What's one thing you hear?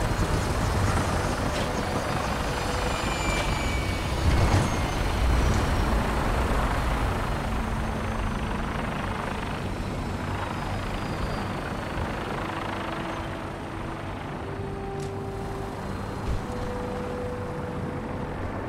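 Helicopter rotors drone and thump steadily nearby.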